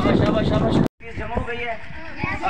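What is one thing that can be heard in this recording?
A group of children shouts and chatters outdoors.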